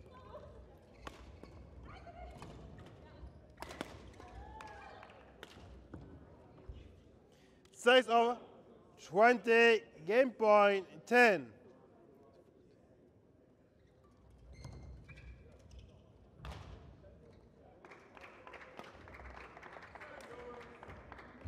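A shuttlecock is struck sharply by rackets now and then.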